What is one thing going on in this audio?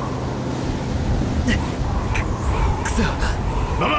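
A young man sobs.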